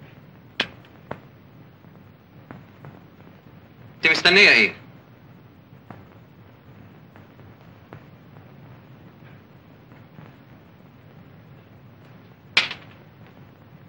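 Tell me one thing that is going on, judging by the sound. A woman's high heels click on a hard floor.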